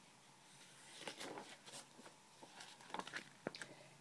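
Paper rustles as a page is turned.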